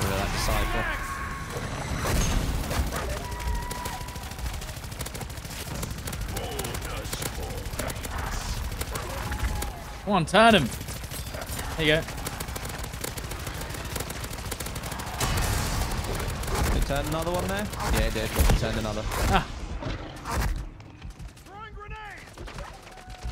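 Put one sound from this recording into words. Gunfire rattles rapidly throughout.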